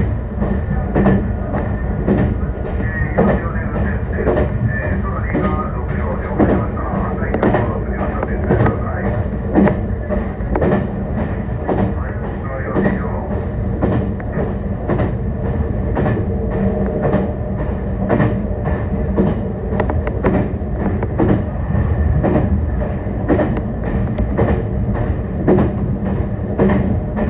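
Train wheels clack over rail joints in a quick, uneven rhythm.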